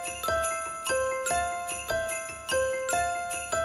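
An electric keyboard plays a bright, chiming melody.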